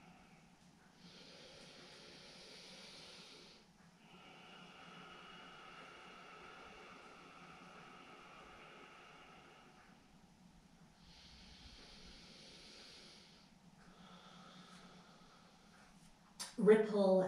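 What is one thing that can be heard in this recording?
A woman breathes slowly and deeply.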